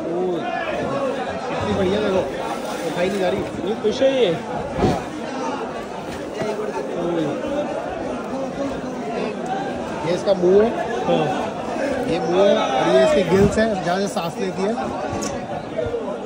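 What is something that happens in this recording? A crowd of men talk and call out loudly nearby.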